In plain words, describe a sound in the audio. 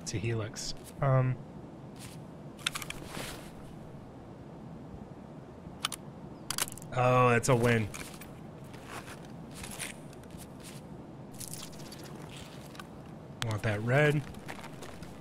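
A man talks in short bursts, close through a headset microphone.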